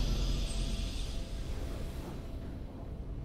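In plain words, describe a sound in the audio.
A bright, shimmering victory chime rings out and fades.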